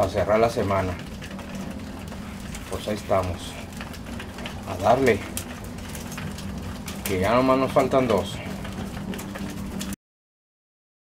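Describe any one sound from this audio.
Pigeons peck at grain on a hard floor.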